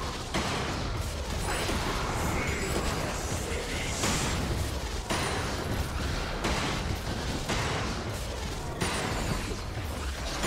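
Game spell effects whoosh and crackle in a fight.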